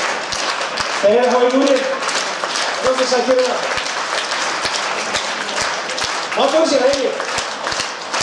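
A man speaks loudly through a microphone and loudspeakers in a large hall.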